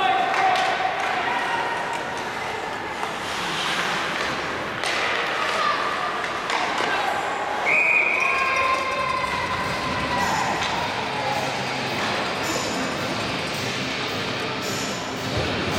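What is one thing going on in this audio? Skates scrape and swish across the ice in a large echoing arena.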